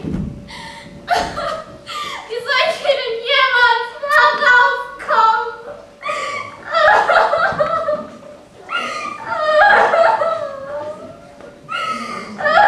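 A young woman sings with feeling.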